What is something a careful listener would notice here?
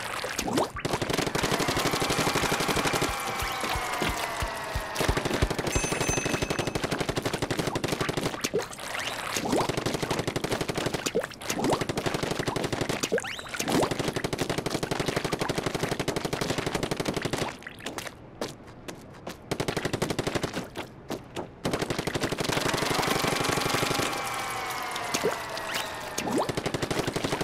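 Ink sprays and splatters in quick bursts from a game character's blaster.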